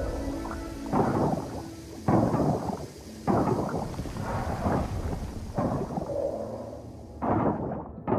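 A pickaxe strikes rock with sharp, repeated knocks.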